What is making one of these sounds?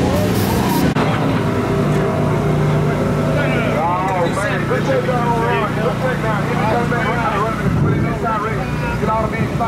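Men talk outdoors nearby.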